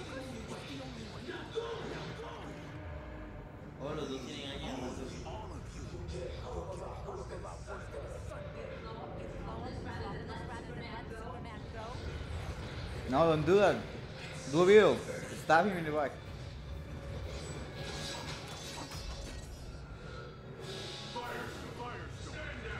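Young men talk and react through a microphone.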